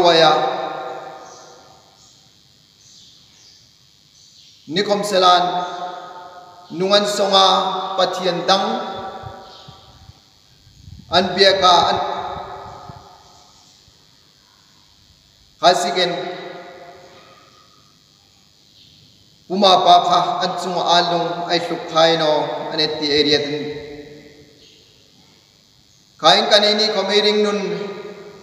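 A middle-aged man speaks slowly and solemnly in bursts, with pauses, in a reverberant hall.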